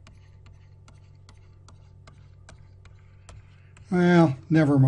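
A stylus taps quickly and evenly on a tablet.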